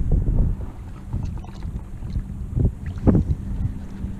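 A fish splashes into the water as it is released.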